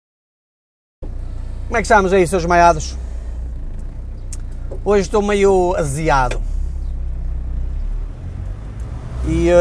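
A car engine hums low and steady inside the car.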